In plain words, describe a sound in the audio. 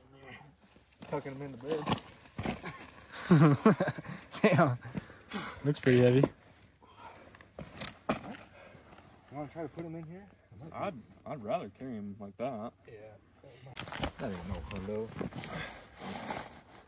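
A man talks outdoors with animation, close by.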